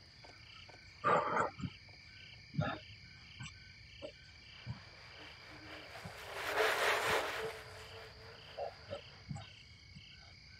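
A man speaks briefly now and then into a close microphone.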